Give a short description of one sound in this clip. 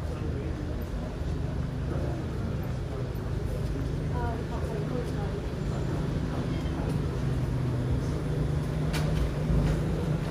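Footsteps scuff on paving stones.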